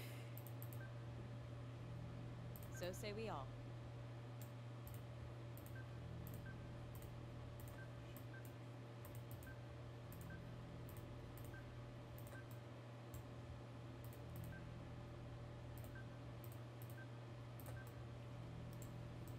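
Interface clicks tick now and then.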